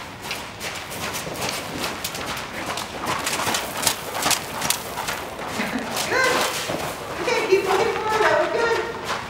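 A horse's hooves thud softly on sand as it walks.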